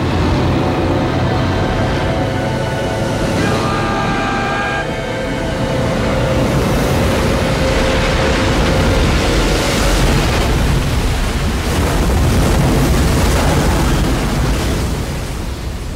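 Strong wind howls over the sea.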